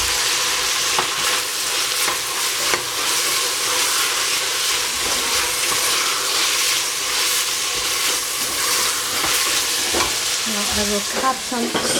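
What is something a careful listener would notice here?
A wooden spoon scrapes and stirs vegetables in a metal pot.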